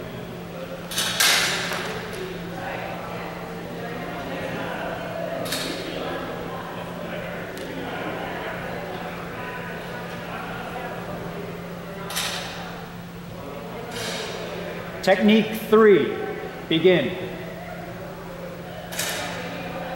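Steel blades clash and ring sharply in a large echoing hall.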